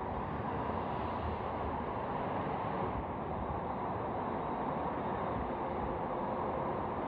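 A low-floor tram rolls along on rails.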